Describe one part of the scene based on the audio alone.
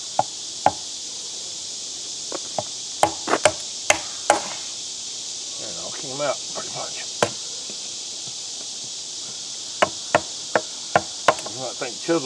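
A hammer taps sharply on a metal chisel.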